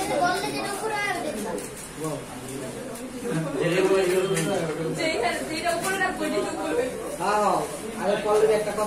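Plastic containers rustle and click as boys handle them.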